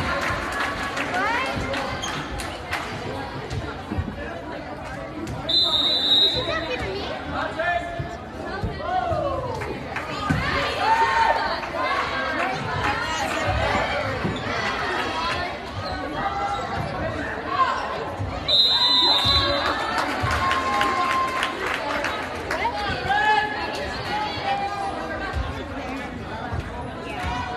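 A crowd chatters and cheers throughout a large echoing gym.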